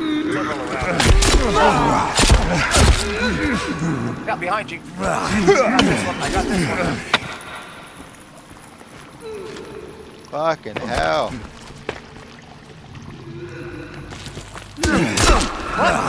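Heavy blows thud against a body.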